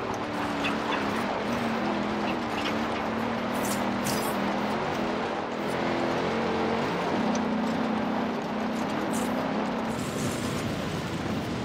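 A sports car engine roars steadily at high revs, shifting pitch as it changes gear.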